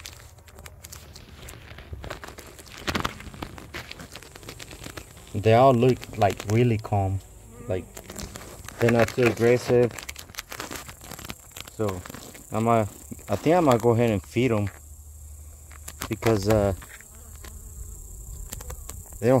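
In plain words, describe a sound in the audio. Bees hum softly inside an open hive.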